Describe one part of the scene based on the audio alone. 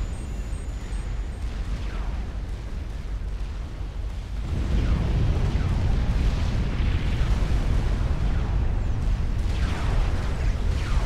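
Dense explosions rumble and boom without pause, growing louder partway through.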